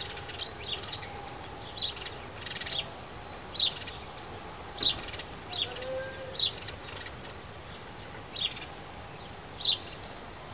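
Small birds chirp in short, sharp bursts nearby.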